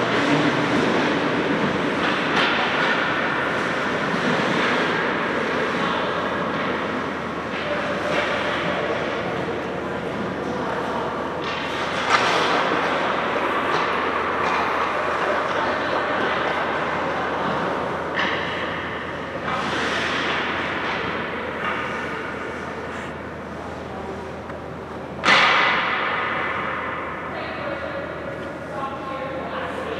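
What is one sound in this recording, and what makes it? Children chatter and call out in a large echoing rink.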